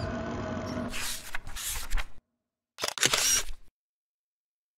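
Book pages flip and rustle.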